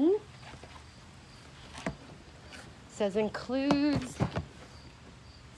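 A cardboard box scrapes and rustles in hands close by.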